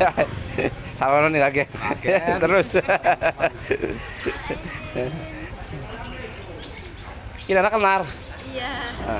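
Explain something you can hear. A young woman laughs and talks cheerfully close by.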